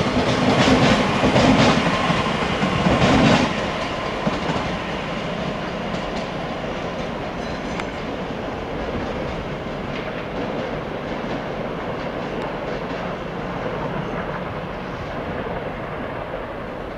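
A train's wheels clatter over rail joints.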